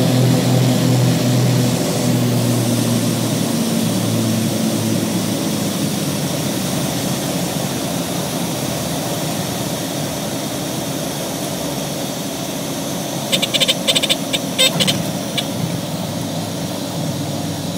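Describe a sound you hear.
Wheels rumble over the runway.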